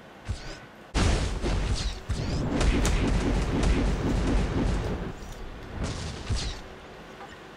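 Battle sounds crash and clash loudly.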